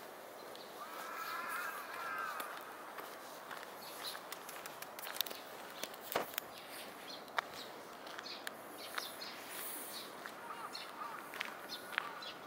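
A cat meows nearby.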